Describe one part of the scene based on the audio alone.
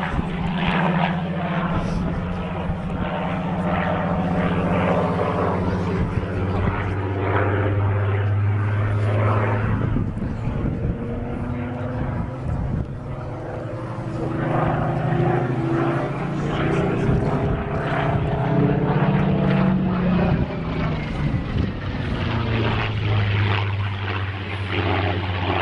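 A small propeller plane drones overhead, its engine pitch rising and falling as it flies.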